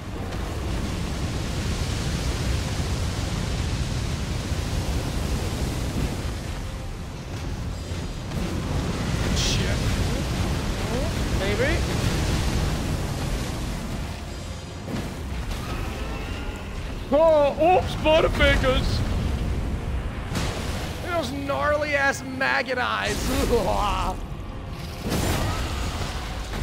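A game plays loud rumbling battle sounds with crashing magic blasts.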